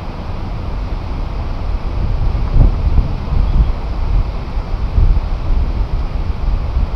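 Wind buffets the microphone in strong, gusty rumbles outdoors.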